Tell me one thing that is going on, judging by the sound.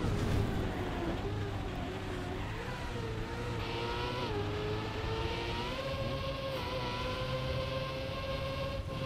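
A racing car engine whines steadily, its pitch rising and dipping as it speeds along.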